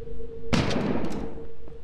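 A gun fires with a loud bang.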